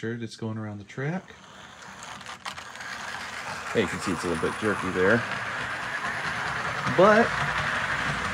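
A small model train hums and rattles along its track.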